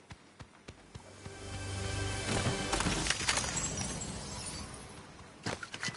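A treasure chest opens with a rising, shimmering chime.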